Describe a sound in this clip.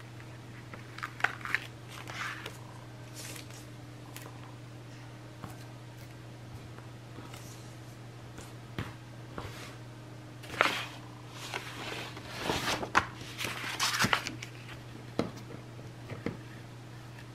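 Hands rub and rustle a sheet of paper close by.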